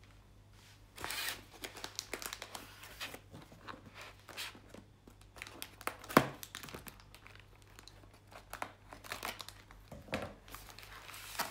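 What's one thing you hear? Inflated plastic air-column packaging crinkles and squeaks as hands turn it over.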